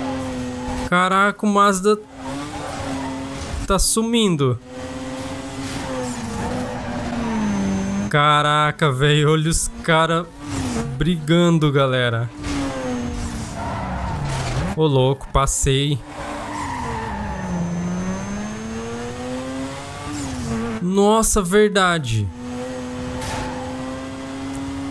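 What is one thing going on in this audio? A racing car engine roars and revs up and down.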